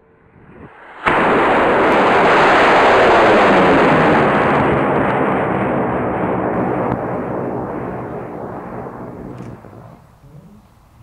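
A rocket motor ignites with a loud roar that slowly fades as it climbs away.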